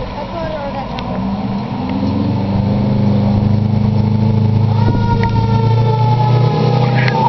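A car engine hums as it pulls up slowly.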